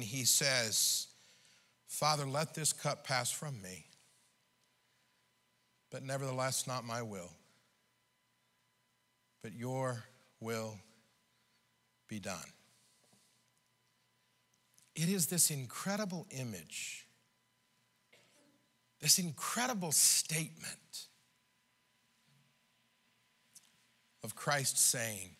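A middle-aged man preaches with animation through a microphone, in bursts with pauses.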